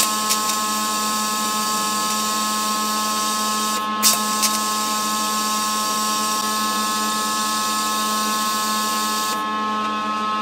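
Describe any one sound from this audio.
A welding torch hisses steadily.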